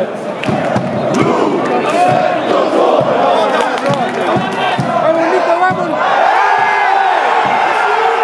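Fans nearby shout and cheer.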